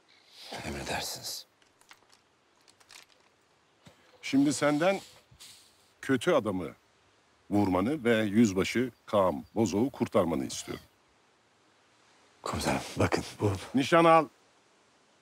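A middle-aged man speaks tensely nearby.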